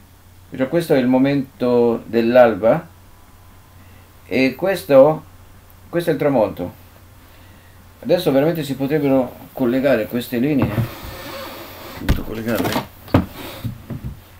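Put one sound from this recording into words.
An elderly man speaks calmly and clearly into a nearby microphone.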